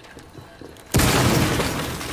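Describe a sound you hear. A loud blast roars and rumbles.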